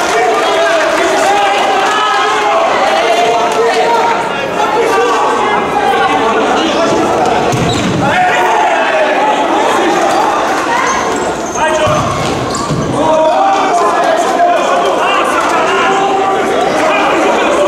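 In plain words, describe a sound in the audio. Young men shout to each other in a large echoing hall.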